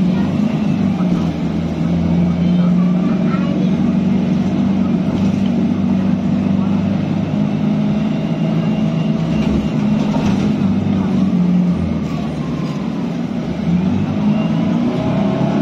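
A low rumble of the bus rolling over the road rattles the cabin.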